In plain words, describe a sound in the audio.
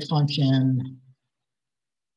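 A man speaks calmly into a microphone, as if on an online call.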